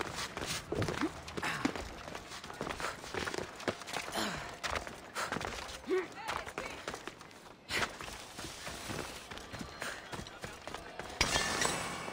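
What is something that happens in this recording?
Hands and feet scrape over rock while climbing.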